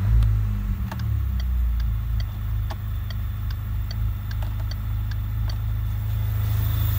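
A turn signal ticks at a steady pace.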